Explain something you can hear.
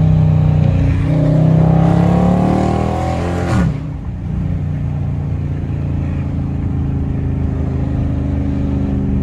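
A car engine revs up, then drops sharply as the gear changes and hums on steadily.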